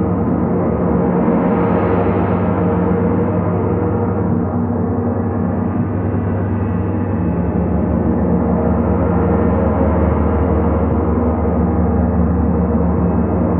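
Large gongs hum and roar in a deep, steady, swelling drone.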